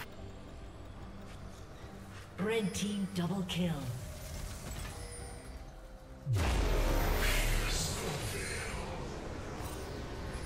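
Game combat sound effects crash and whoosh.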